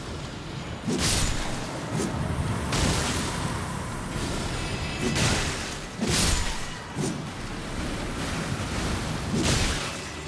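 A blade swings and strikes with heavy, sudden impacts.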